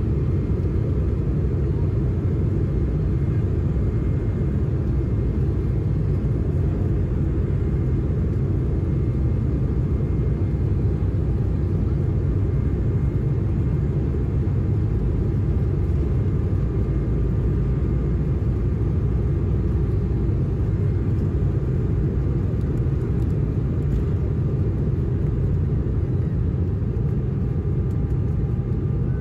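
Aircraft wheels rumble over a runway.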